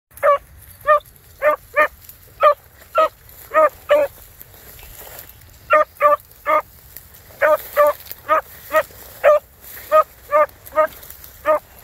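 Dry brush rustles as a dog pushes through it.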